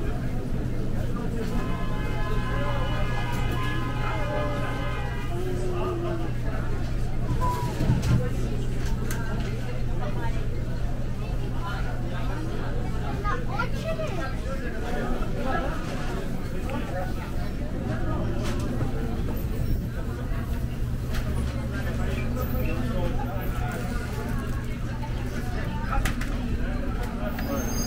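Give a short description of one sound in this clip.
A crowd of shoppers murmurs and chatters in a busy indoor space.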